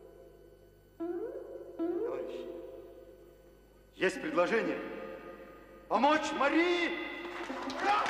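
A middle-aged man speaks loudly and with animation.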